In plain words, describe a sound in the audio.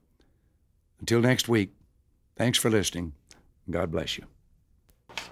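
An elderly man reads aloud into a microphone, in short phrases.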